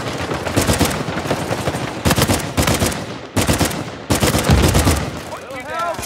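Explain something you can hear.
Rifle shots fire in loud, echoing bursts.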